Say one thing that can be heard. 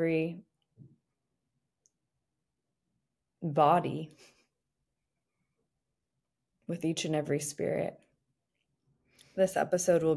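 A young woman speaks close into a microphone, in short phrases with pauses.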